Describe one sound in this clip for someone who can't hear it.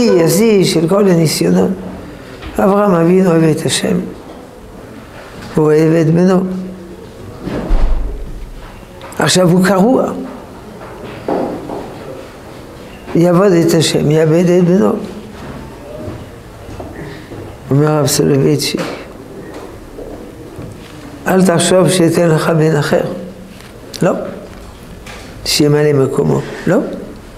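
An elderly man speaks with animation into a nearby microphone, in short bursts with pauses.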